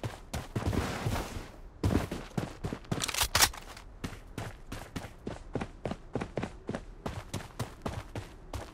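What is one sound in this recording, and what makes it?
Footsteps run quickly over dry, gravelly ground.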